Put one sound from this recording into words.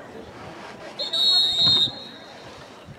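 A referee's whistle blows a long, shrill blast.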